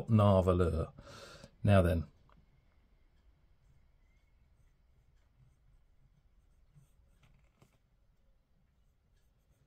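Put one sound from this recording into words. A fountain pen nib scratches softly across paper.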